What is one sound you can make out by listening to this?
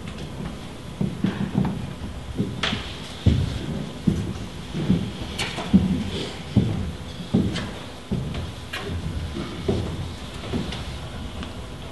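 Footsteps knock on a wooden stage in an echoing hall.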